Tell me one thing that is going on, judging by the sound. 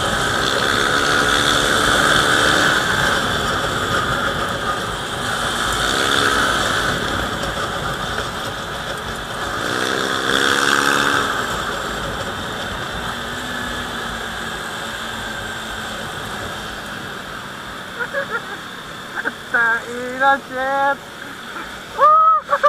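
Wind rushes past while riding.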